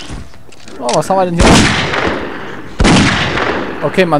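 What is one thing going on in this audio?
A revolver fires loud, echoing shots.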